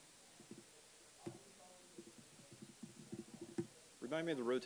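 Keys click quickly on a keyboard.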